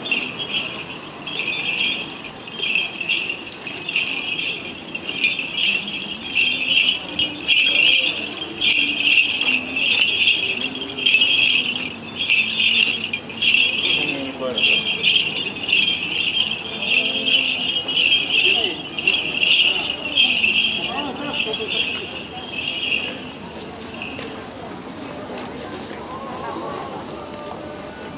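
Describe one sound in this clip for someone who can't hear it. A crowd murmurs softly nearby.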